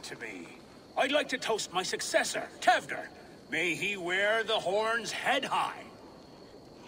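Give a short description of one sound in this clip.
A man speaks a toast in a raised, animated voice close by.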